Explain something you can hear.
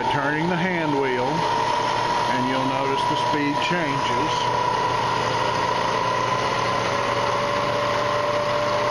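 A machine motor hums with a steady whine.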